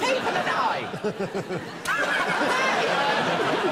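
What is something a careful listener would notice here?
A young man laughs.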